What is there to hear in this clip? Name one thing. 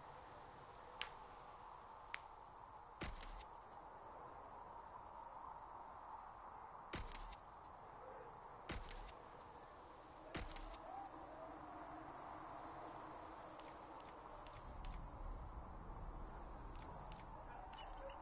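Short game menu clicks sound as the selection moves through a list.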